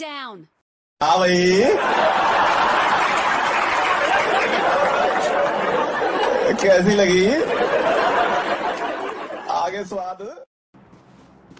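A young man talks with animation through a handheld microphone.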